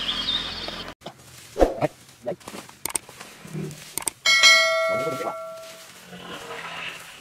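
Rakes and hoes scrape and thud on dry leaves and ground.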